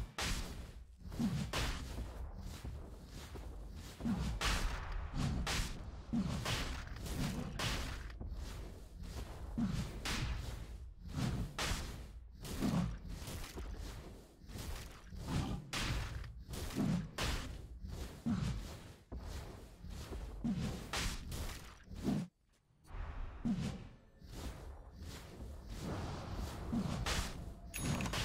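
Blows and clashing strikes ring out repeatedly in a fight.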